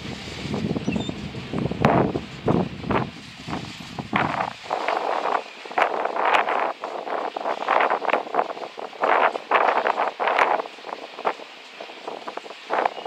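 A long freight train rolls past, its wheels clattering and clanking on the rails.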